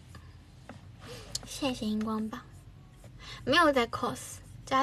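A young woman speaks softly and playfully into a close microphone.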